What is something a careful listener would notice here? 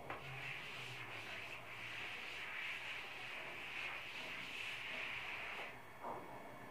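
A cloth rubs briskly across a chalkboard.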